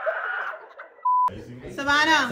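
A steady high test tone beeps briefly.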